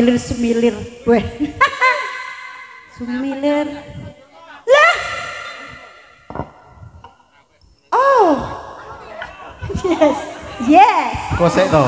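A young man talks and sings back through a microphone over a loudspeaker.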